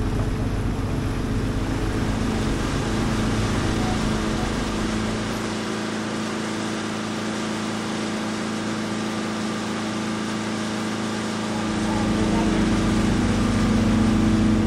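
Water rushes and splashes along a boat's hull.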